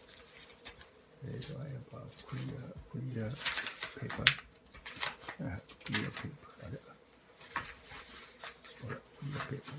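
A sleeve brushes and rustles against paper.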